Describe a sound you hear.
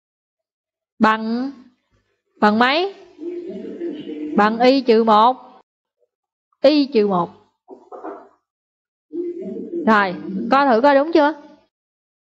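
A young girl speaks with animation over an online call.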